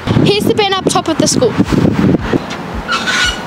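A young girl speaks clearly into a microphone.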